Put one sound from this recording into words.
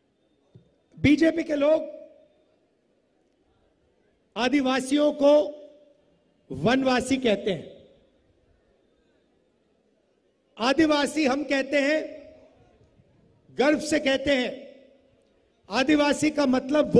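A man speaks forcefully into a microphone in short bursts, heard over loudspeakers.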